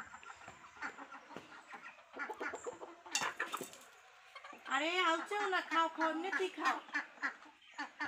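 Hens cluck and call close by.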